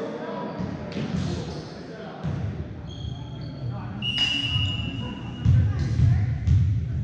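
A volleyball is struck with sharp smacks.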